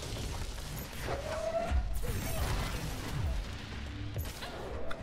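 Heavy debris crashes and clatters.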